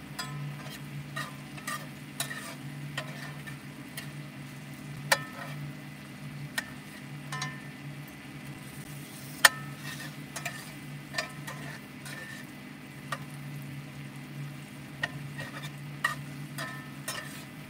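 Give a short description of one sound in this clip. A metal spatula scrapes and clinks against a frying pan.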